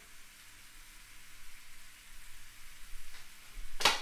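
Chopped onions tumble into a frying pan.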